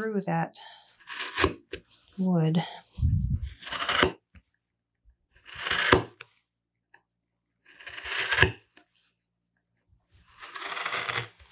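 A gouge shaves curls from wood in short scraping strokes.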